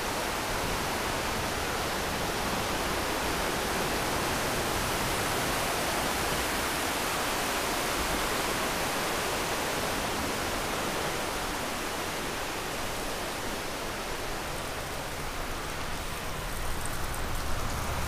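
Tyres hiss over a wet road.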